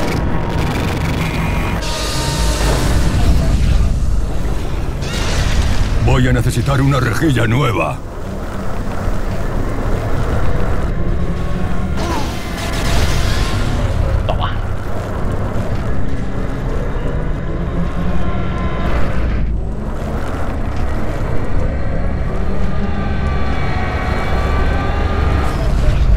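A vehicle engine rumbles and revs steadily.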